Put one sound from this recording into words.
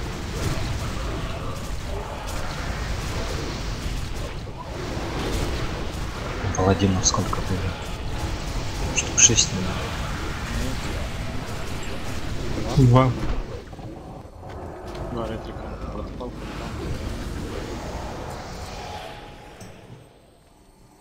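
Game battle sounds of magic blasts and blows clash loudly.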